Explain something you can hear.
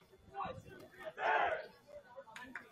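Young players cheer together as a team huddle breaks.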